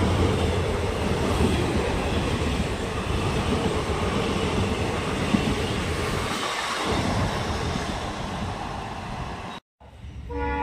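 A passenger train rushes past close by, wheels rumbling and clattering on the rails.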